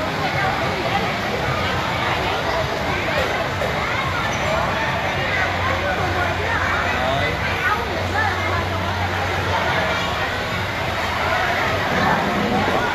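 A crowd of people chatter all around in a busy, echoing indoor space.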